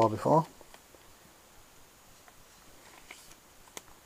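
A paper page of a book turns.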